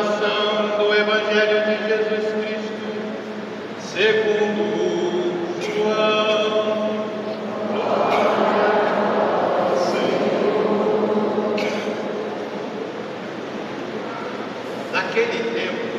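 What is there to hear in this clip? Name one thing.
A man sings through loudspeakers in a large echoing hall.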